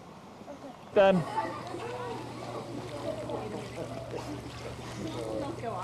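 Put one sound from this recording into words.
Water splashes as people swim outdoors.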